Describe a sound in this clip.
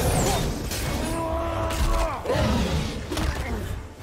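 A monster roars and growls.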